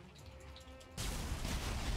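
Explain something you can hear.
A magical blast crackles and roars.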